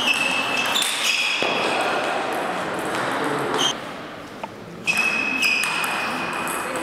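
A table tennis ball clicks against paddles and the table.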